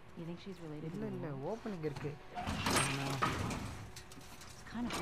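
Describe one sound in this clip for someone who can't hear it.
A young woman speaks quietly and hesitantly.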